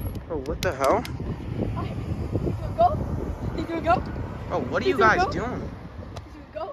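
Young boys talk and shout outdoors.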